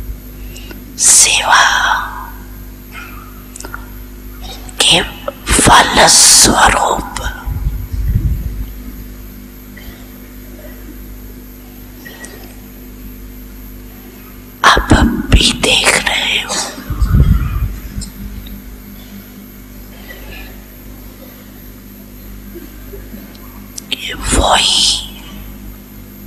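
An elderly woman speaks slowly and calmly into a microphone, with long pauses.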